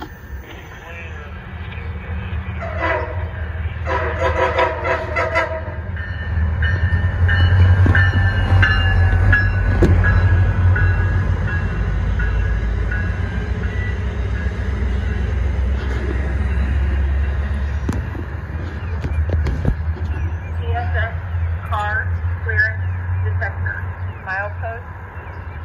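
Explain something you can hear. A train rumbles closer and roars past on the tracks.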